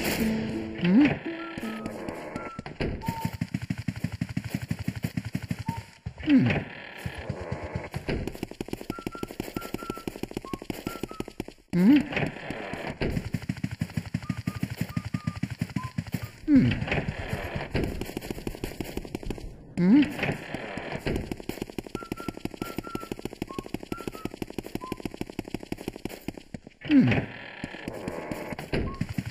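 Quick light footsteps patter on a wooden floor.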